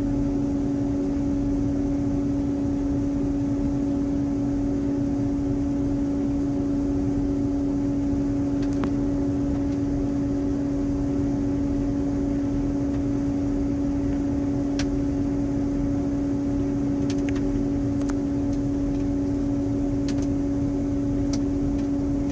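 A tractor engine drones steadily close by, heard from inside its cab.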